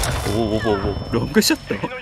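Rifle shots ring out in short bursts.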